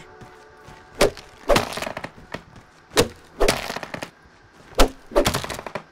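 A blade whooshes and slashes through grass again and again.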